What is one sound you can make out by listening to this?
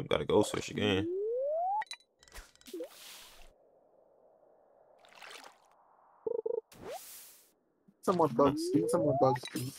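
A fishing line is cast with a rising whoosh.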